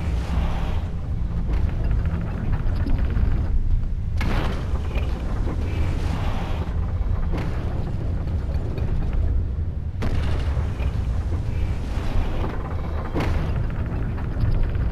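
Strong wind roars and gusts steadily.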